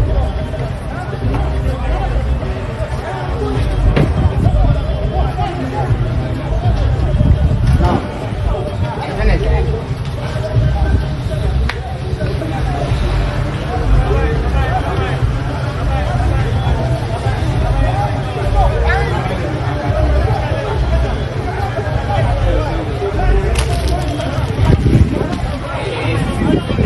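A crowd of men and women talks and shouts at a distance outdoors.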